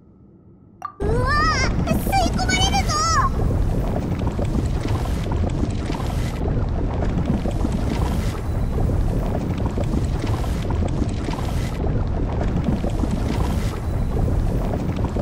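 A strong wind roars steadily.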